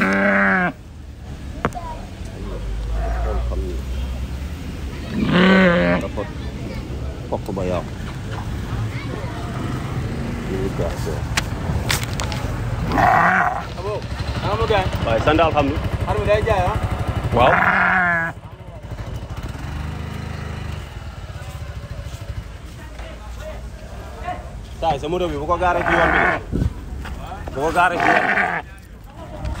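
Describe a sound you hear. A ram bleats loudly, again and again.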